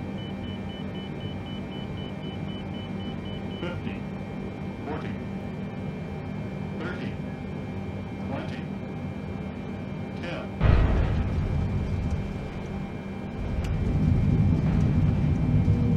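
An aircraft's engines drone steadily.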